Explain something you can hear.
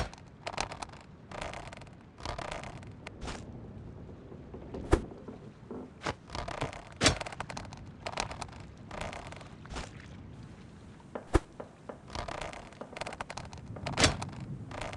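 A hook splashes into calm water.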